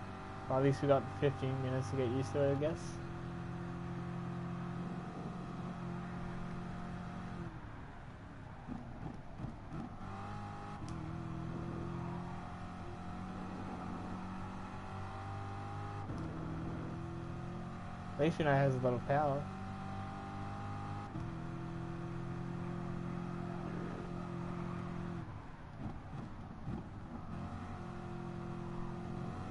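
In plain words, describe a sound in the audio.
A racing car engine roars steadily, revving up and down through the gears.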